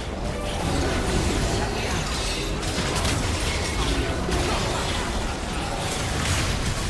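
Fantasy spell effects whoosh and crackle in a video game battle.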